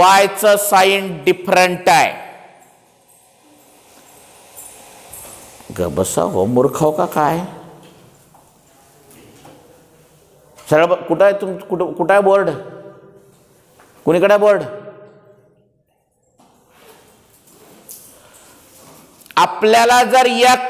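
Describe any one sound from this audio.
A middle-aged man lectures calmly through a clip-on microphone, in bursts with pauses.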